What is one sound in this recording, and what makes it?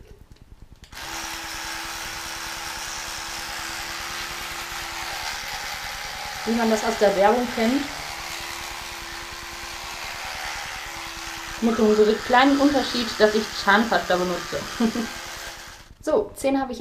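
An electric toothbrush hums steadily.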